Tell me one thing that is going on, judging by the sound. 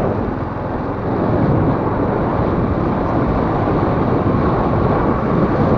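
A truck passes by on the road.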